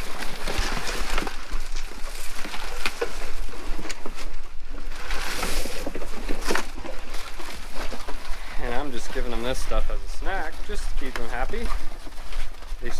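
Pigs chomp and root noisily through feed and straw.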